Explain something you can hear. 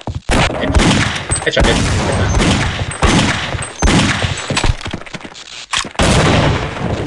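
A pistol fires shot after shot.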